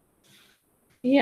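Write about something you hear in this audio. A young woman speaks over an online call.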